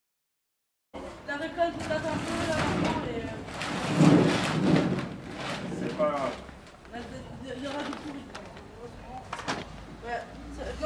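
A man talks calmly nearby, outdoors.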